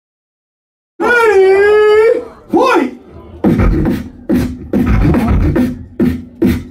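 A young man beatboxes into a microphone, with loud bass and sharp snare-like clicks.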